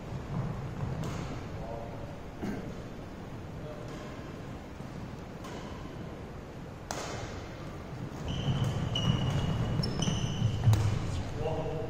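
Shuttlecocks are hit with rackets with sharp pops in a large echoing hall.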